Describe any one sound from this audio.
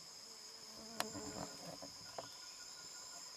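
Leaves and branches rustle as chimpanzees shift about in a tree.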